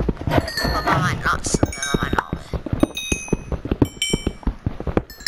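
A pickaxe chips at stone blocks in a video game with rapid clicking hits.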